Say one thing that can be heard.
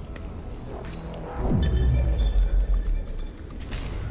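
A heavy electric switch clunks into place.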